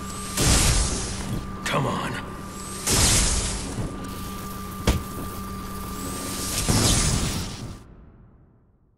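Electric shocks crackle and buzz in loud bursts.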